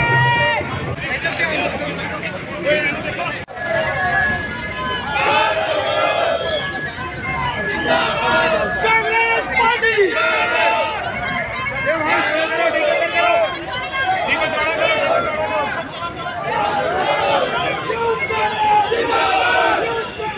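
A large crowd chants and shouts loudly outdoors.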